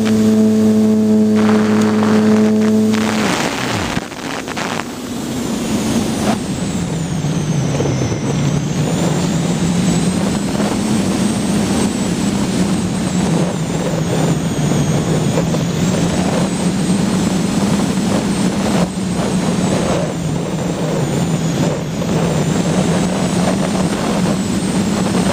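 A light aircraft engine drones steadily, its pitch dropping briefly early on.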